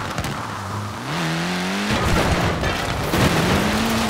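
A car smashes through a wooden fence with a crack.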